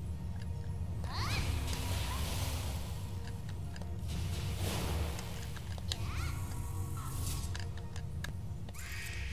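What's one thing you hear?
Magic spells burst and crackle in quick blasts.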